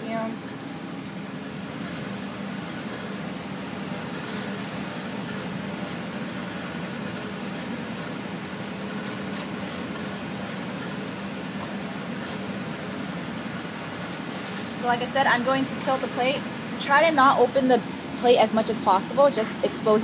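A ventilation fan hums steadily.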